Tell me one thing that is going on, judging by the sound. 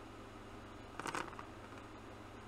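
Dice clatter briefly as they roll.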